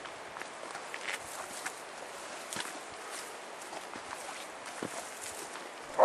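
Footsteps crunch through dry leaves and undergrowth outdoors.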